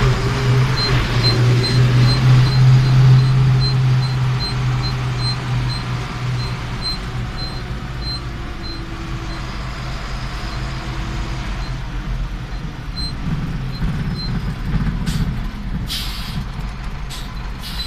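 A tractor engine rumbles steadily while driving.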